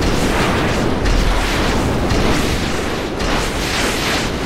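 Explosions boom as missiles hit.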